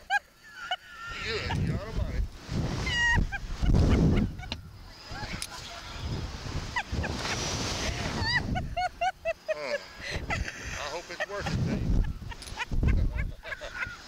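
An elderly man groans and laughs close by.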